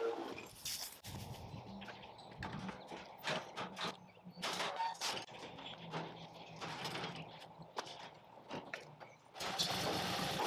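Metal equipment clanks and knocks while being loaded.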